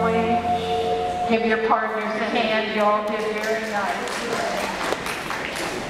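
Country dance music plays through loudspeakers in a large echoing hall.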